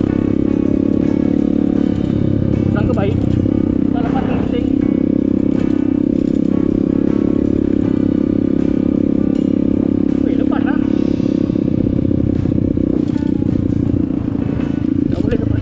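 A motorcycle engine drones steadily up close.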